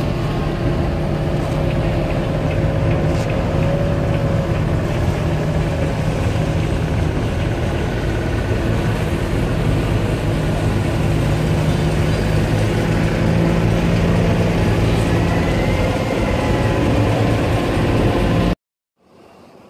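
A ferry engine rumbles steadily and loudly close by.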